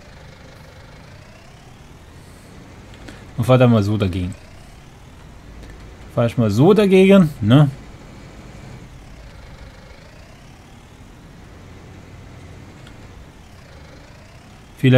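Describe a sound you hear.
A tractor engine hums and revs up and down.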